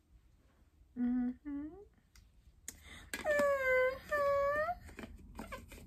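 A young woman hums in a sing-song voice.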